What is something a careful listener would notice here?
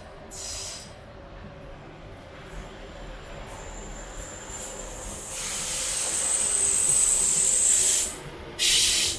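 A train rumbles across a bridge.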